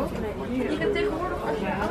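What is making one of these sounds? A crowd of people chatters indoors, muffled behind glass.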